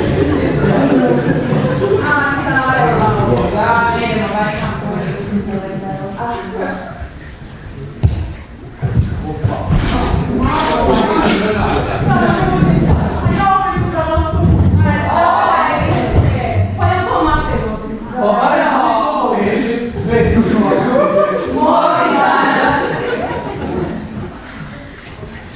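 Young women talk and call out on stage, heard from afar in a large echoing hall.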